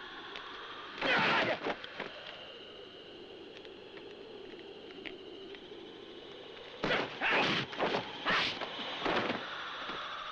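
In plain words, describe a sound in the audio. Blows and kicks land with sharp thuds during a fight.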